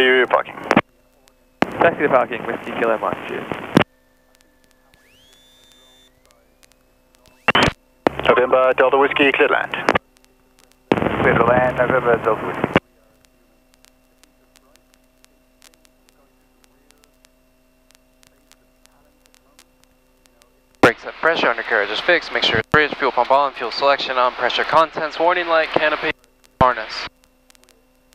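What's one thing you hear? A man talks through a headset intercom, in short bursts.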